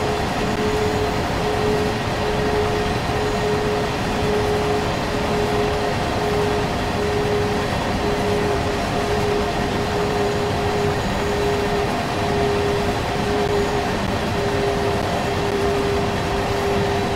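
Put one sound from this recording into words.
A heavy freight train rumbles and clatters steadily along the rails.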